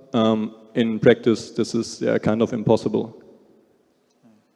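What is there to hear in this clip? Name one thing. A young man speaks with animation into a microphone over loudspeakers in a large hall.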